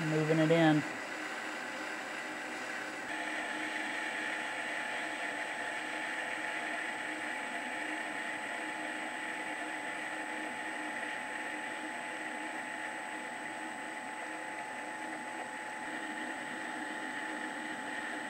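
A metal spindle spins with a steady high whine.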